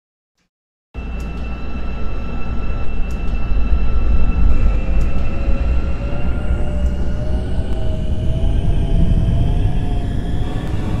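An electric train motor whines, rising slowly in pitch.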